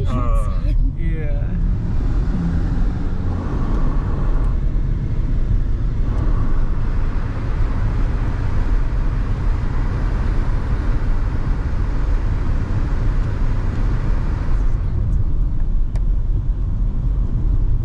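A car engine hums with road rumble from inside the car.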